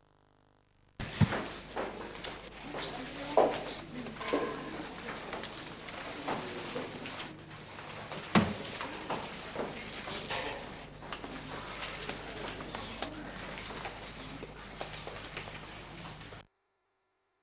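A band plays music.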